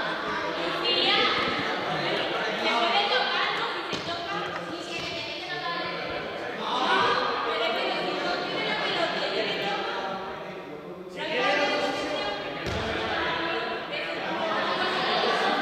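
Children and young people chatter and call out in a large echoing hall.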